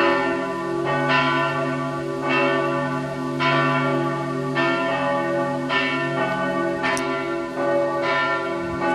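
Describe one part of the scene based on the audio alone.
Large church bells ring out loudly from a tower, struck about once a second and ringing on between strikes.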